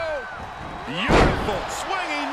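A body slams hard onto a wrestling ring mat with a heavy thud.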